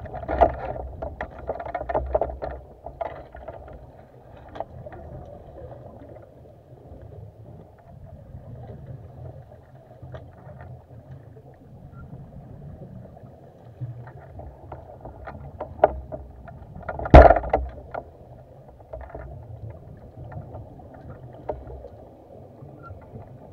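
A diver's exhaled air bubbles out underwater with a low gurgling rumble.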